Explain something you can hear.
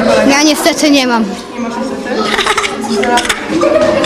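A boy laughs loudly.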